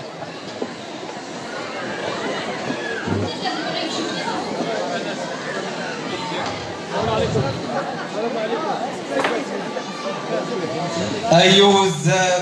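A crowd of men and women chatters in a hall.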